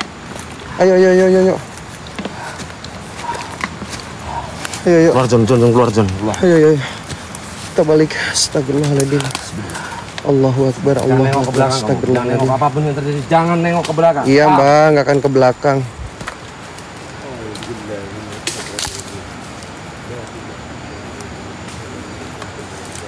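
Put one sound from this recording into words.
Dry leaves crunch underfoot.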